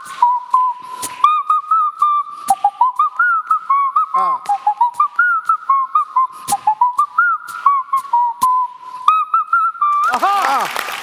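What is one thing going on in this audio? A boy whistles a tune into a microphone.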